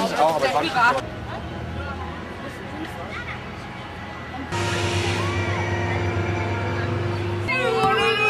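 Young people on a raft talk quietly.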